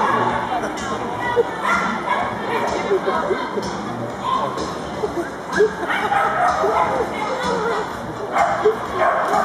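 A woman calls out commands to a dog with animation.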